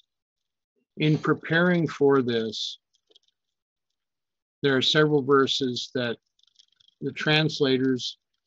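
An older man talks calmly through a microphone, as on an online call.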